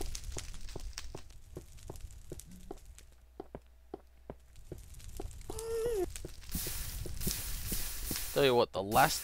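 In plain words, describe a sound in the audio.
Footsteps crunch steadily on gravelly ground.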